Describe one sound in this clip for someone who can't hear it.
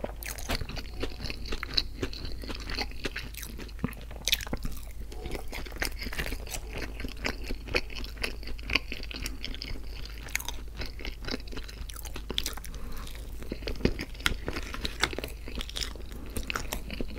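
A man chews food wetly and smacks his lips close to a microphone.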